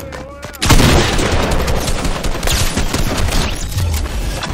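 A shotgun fires with loud, booming blasts.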